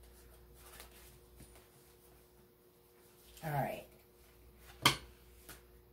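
Cards shuffle and tap together.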